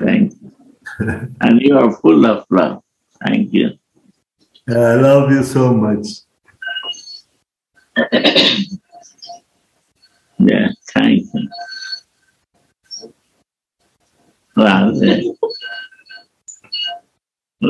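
An elderly man talks and laughs over an online call.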